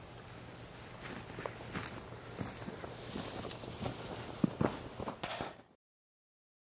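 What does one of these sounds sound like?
Footsteps crunch on grass and fade away.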